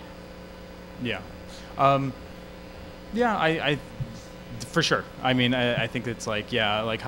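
A young man speaks into a microphone in short bursts.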